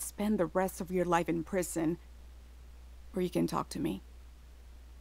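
A woman speaks calmly and seriously close by.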